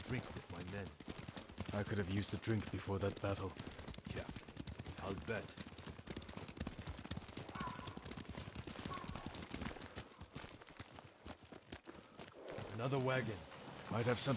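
Horse hooves thud along a dirt path.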